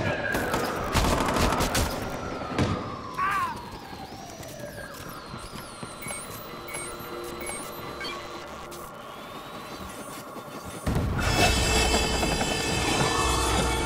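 A small motor whirs steadily.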